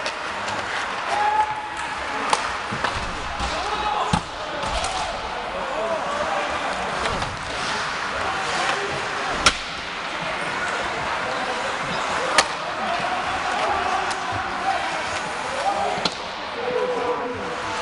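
A crowd of spectators chatters and calls out in a large echoing rink.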